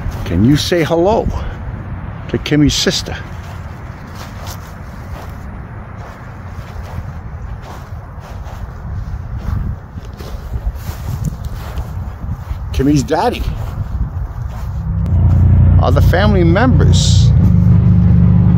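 Wind rumbles against the microphone outdoors, growing stronger toward the end.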